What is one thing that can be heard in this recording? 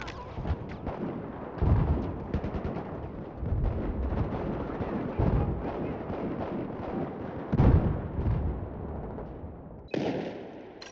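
Gunfire and explosions boom and rattle in a battle.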